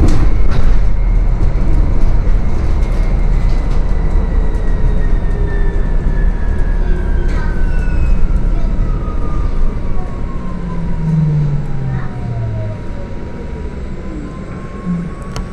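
A hybrid city bus slows down, its electric motor whine falling in pitch.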